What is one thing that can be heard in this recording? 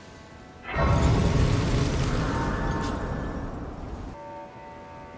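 A bright magical chime swells with a deep boom and rings out.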